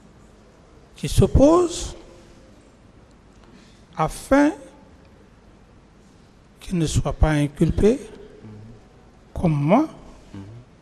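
An adult man speaks into a microphone in short bursts with pauses.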